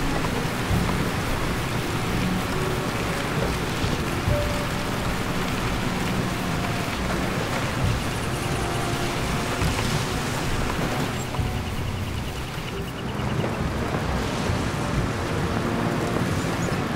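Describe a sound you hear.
An engine rumbles steadily as a vehicle drives.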